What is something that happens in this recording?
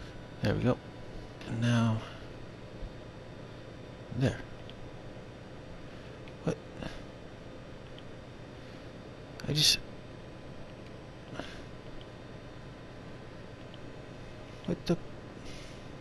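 A device clicks sharply as its settings switch.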